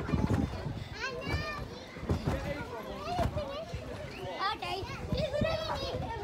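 Feet thump on a trampoline as children bounce.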